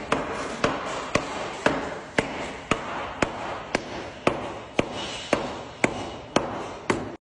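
A hammer strikes a concrete block wall with sharp, regular knocks.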